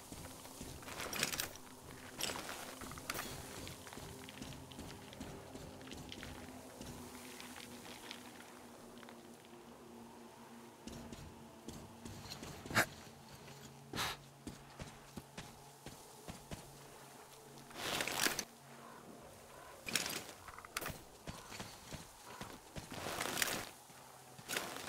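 A paper map rustles as it is unfolded.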